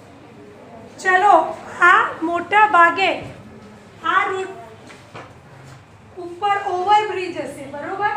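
A woman speaks loudly and animatedly close by.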